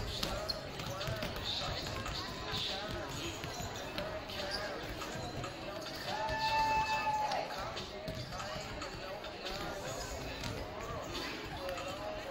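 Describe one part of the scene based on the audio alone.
Sneakers squeak on a hard gym floor.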